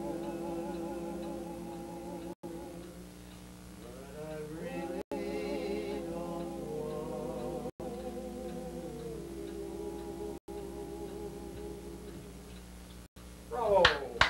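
Several men sing together in close harmony.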